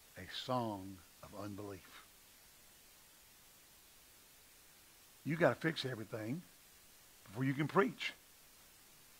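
A middle-aged man speaks in short phrases into a microphone, with long pauses.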